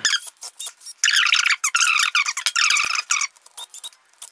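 A cordless screwdriver whirs in short bursts.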